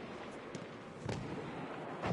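A gunshot cracks at a distance.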